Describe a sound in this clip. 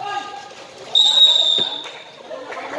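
A referee's whistle blows once sharply.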